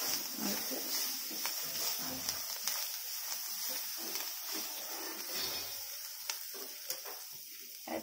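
A spatula scrapes and stirs food in a metal pan.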